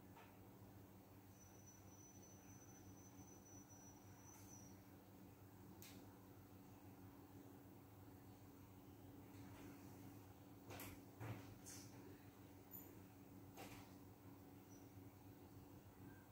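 An extractor fan hums steadily.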